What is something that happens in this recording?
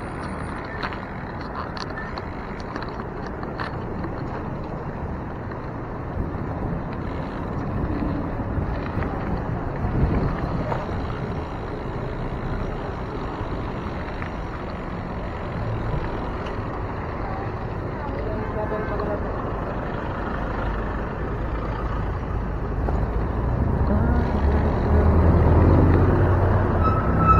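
Car traffic rumbles steadily past at close range.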